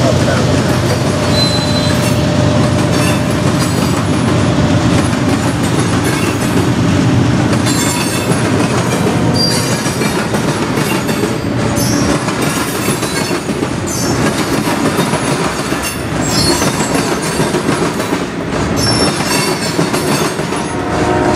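Train wheels clatter and squeal over the rails.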